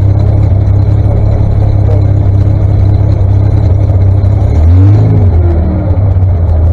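Tractor engines idle and rumble steadily outdoors.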